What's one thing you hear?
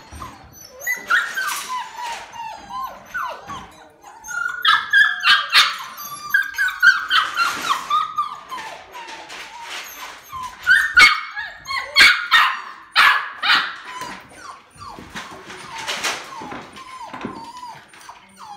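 Puppies whine and yelp in high squeaky cries.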